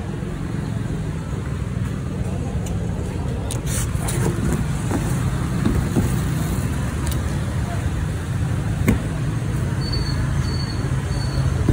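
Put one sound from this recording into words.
Cardboard boxes scrape and bump as they are handled.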